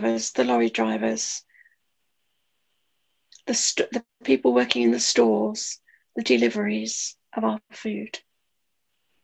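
An elderly woman talks with animation over an online call.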